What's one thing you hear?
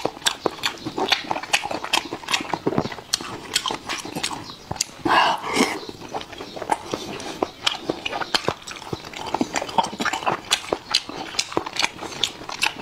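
A man chews and slurps food loudly and wetly close to a microphone.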